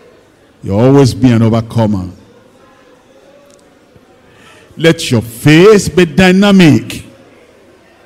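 An elderly man preaches forcefully through a microphone in two bursts.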